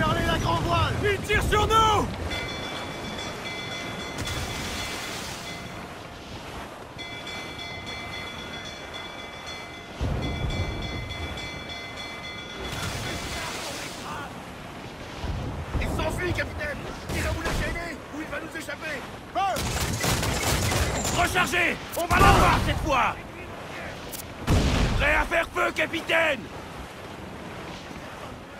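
Waves wash against a wooden ship's hull.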